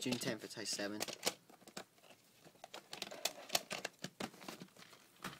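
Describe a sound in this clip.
A plastic tape case rattles and clacks as it is handled.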